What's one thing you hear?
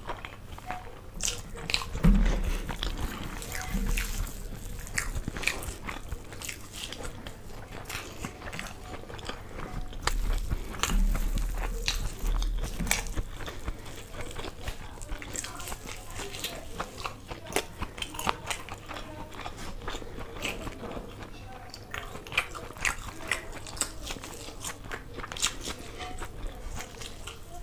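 A young woman chews food loudly and wetly, close to a microphone.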